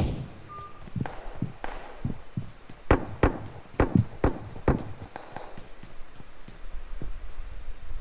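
Quick footsteps thud on a hard floor and stairs.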